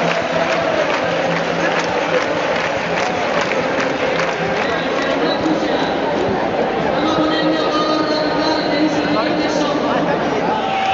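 A large crowd murmurs and chatters loudly outdoors.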